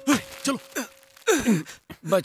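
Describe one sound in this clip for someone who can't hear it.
A man shouts with animation, close by.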